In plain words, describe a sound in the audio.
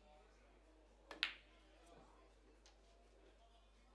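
A pool ball rolls across the table.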